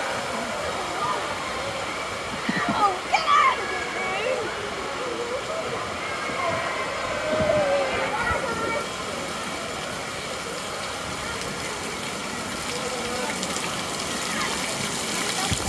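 Water splashes and swirls steadily around floating tubes.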